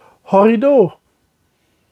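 A man speaks animatedly, close to a microphone.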